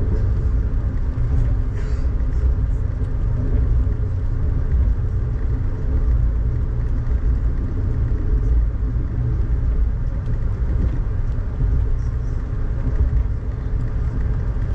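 A vehicle rumbles steadily while moving along.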